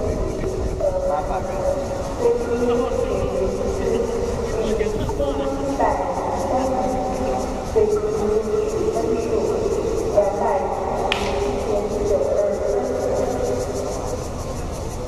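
Men talk and call out across an open outdoor space.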